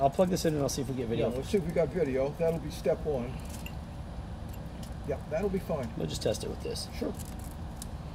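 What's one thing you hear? A middle-aged man talks calmly into a close microphone.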